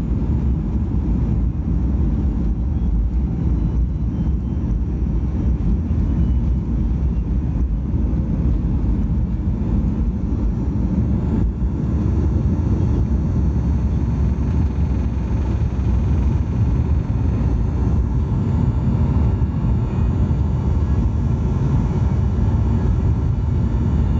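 Jet engines roar loudly and steadily as an airliner takes off.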